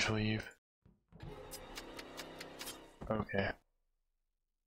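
A sharp slashing game sound effect plays during a kill.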